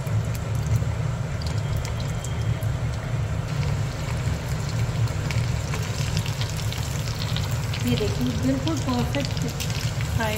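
Hot oil sizzles and bubbles in a pan.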